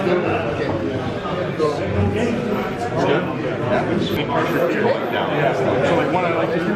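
People chatter in the background.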